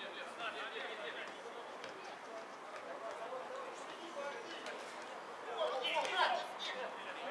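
Men shout and call to each other in the open air across a playing field.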